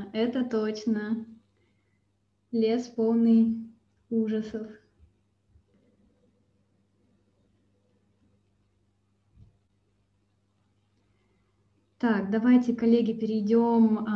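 A young woman speaks calmly through an online call microphone, with pauses.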